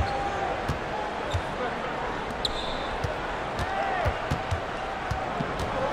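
A basketball bounces repeatedly on a hardwood court.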